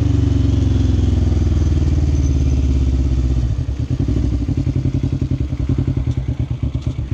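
A quad bike engine roars loudly up close, then drops to a throbbing idle as the bike slows.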